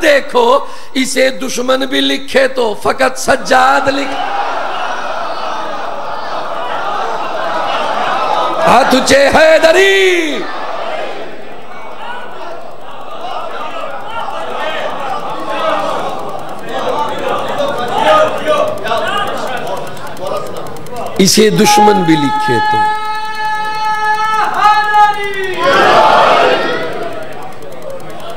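A man recites loudly and with passion through a microphone, in a reverberant hall.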